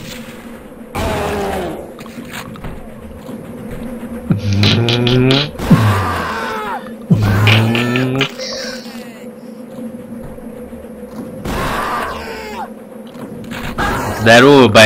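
Monsters groan and scream.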